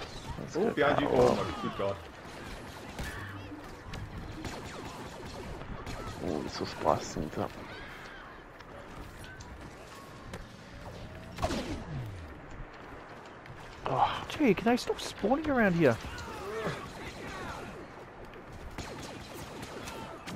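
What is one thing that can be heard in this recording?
Laser blasters fire in short bursts.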